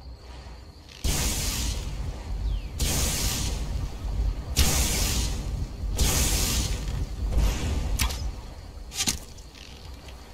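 A bowstring creaks as a bow is drawn.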